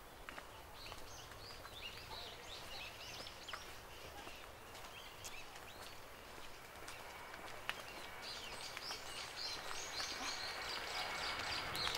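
People's footsteps pad along a path.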